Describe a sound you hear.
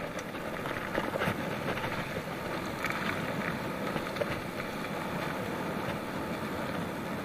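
Bicycle tyres roll and rattle over a bumpy grass track.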